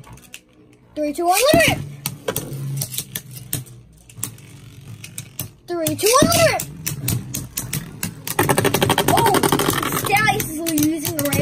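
Spinning tops knock and clatter against each other in a plastic dish.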